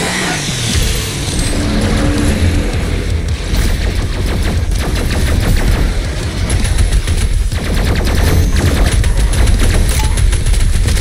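Rapid gunfire rattles and booms.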